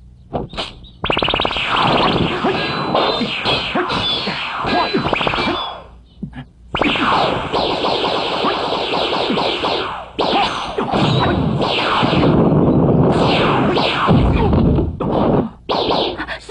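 Swords clash and ring repeatedly.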